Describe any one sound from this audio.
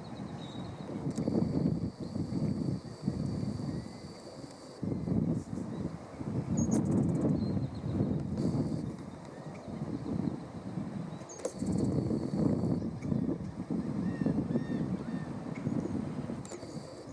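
Wind gusts rumble and rustle through leaves outdoors.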